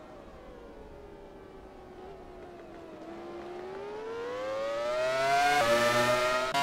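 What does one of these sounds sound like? A racing car engine whines, rising in pitch as it passes close by.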